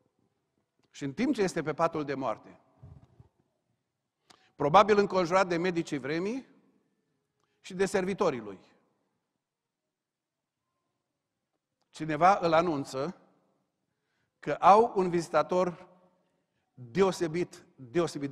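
A middle-aged man speaks calmly through a microphone in phrases with pauses.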